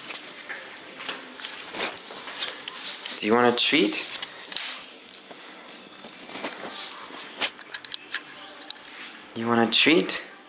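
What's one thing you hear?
A dog's claws click and scrape on a hard floor.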